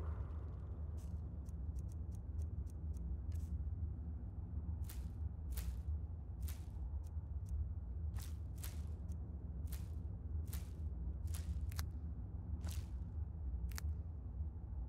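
Short soft clicks tick one after another.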